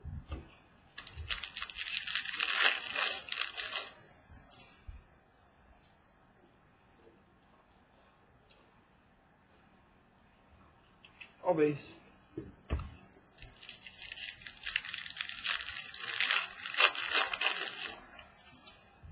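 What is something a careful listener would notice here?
Plastic wrapping rustles and crinkles close by.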